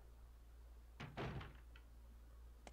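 A heavy door creaks open and thuds shut.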